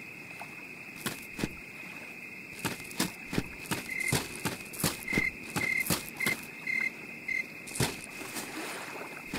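Footsteps crunch slowly over leaves and dirt.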